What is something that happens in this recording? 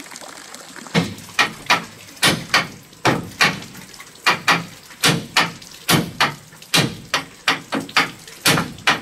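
A hammer knocks repeatedly on wood.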